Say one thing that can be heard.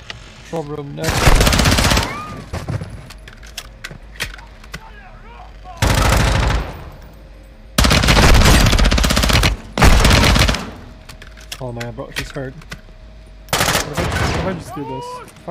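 Automatic gunfire rattles in loud, short bursts, echoing indoors.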